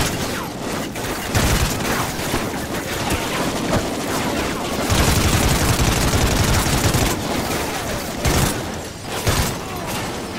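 Gunfire crackles and bangs in bursts.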